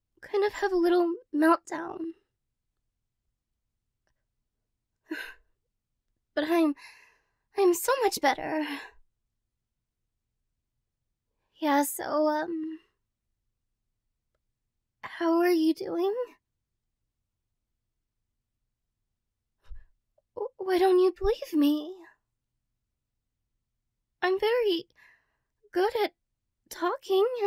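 A young woman speaks cheerfully and closely into a microphone, in short bursts with pauses.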